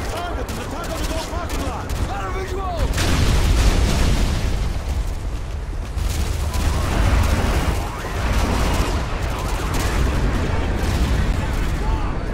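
Fires roar and crackle nearby.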